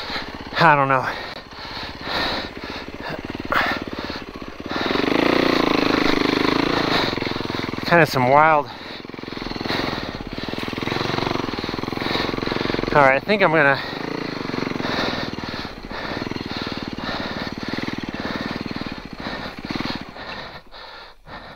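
A snowmobile engine roars and revs up and down close by.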